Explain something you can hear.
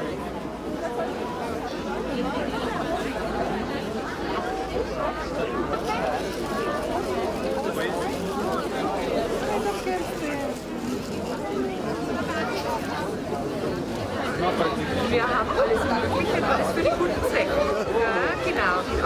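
A crowd of adults chatters all around outdoors.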